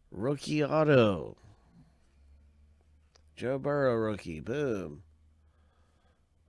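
Trading cards slide against each other.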